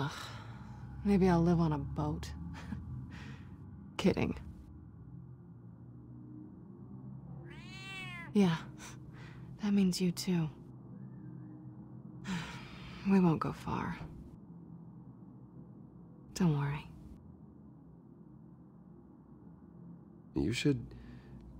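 A young woman speaks softly and calmly.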